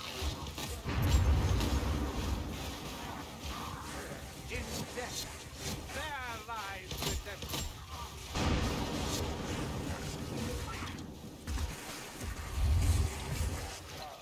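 Heavy blasts boom.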